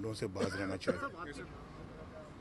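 An elderly man speaks into microphones up close.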